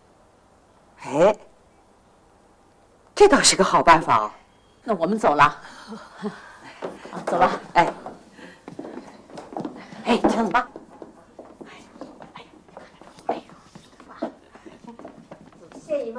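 Middle-aged women talk and greet each other with animation nearby.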